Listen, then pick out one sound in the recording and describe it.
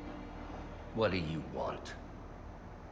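A man asks a short question in a low, gruff voice.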